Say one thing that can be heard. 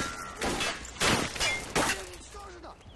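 Rifle gunshots crack in short bursts.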